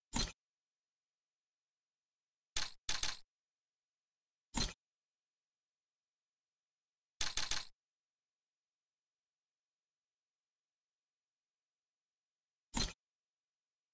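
Short bursts of game sound effects play now and then, with silence between them.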